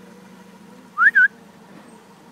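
A small bird chirps sharply, close by.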